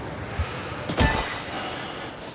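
Skis land with a heavy thump on snow.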